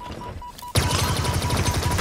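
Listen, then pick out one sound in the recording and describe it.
An energy weapon fires with a buzzing zap.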